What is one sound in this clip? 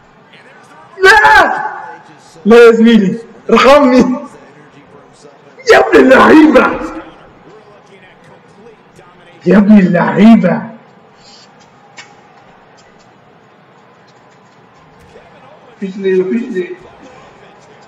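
A young man shouts and exclaims excitedly, close to a microphone.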